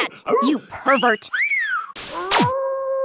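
A cartoon character chatters and squawks in a high, shrill voice.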